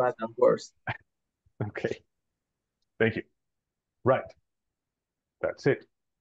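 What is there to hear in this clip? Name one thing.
A woman speaks calmly in short phrases over an online call.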